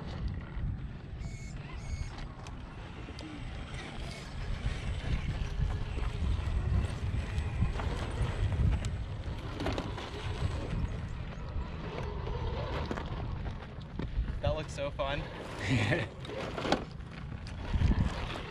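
A small electric motor whirs as a toy truck crawls over rock.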